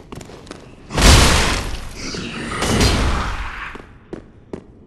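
A loud fiery explosion bursts and roars.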